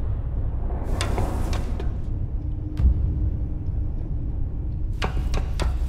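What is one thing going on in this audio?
Hands knock and clank on metal ladder rungs during a climb.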